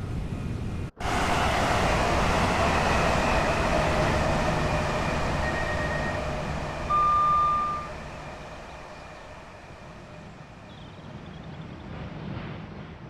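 A passing train roars loudly along the tracks and slowly fades.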